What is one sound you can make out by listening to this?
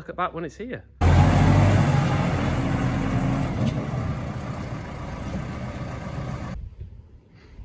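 A tractor engine rumbles.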